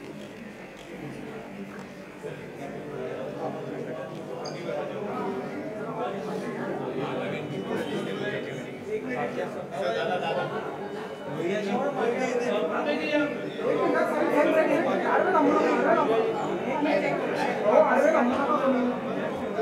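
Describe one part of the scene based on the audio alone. A crowd of men chatter in a room that echoes a little.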